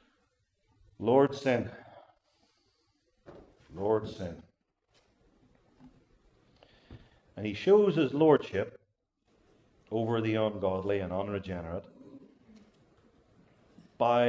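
An elderly man speaks slowly and deliberately through a microphone, with long pauses.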